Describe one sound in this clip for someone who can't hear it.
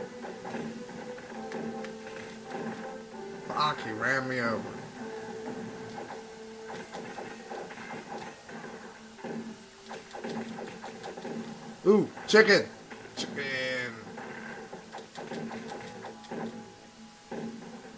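Video game combat sounds of hits and blasts crack out repeatedly through a television speaker.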